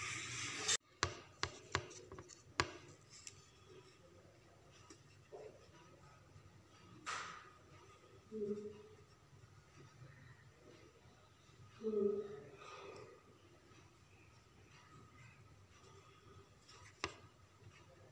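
Fingertips press and tap small glass stones onto paper.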